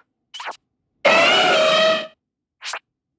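A cartoon creature lets out a short, warbling cry.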